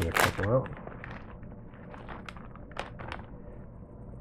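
A plastic snack wrapper crinkles.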